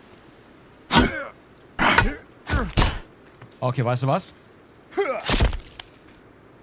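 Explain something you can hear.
An axe strikes a body with heavy thuds.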